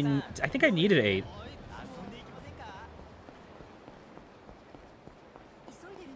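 Footsteps hurry along a hard pavement.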